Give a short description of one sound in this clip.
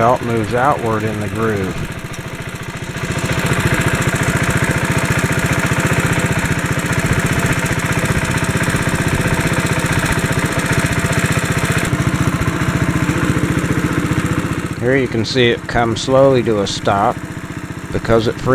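A small engine runs with a steady, rapid chugging.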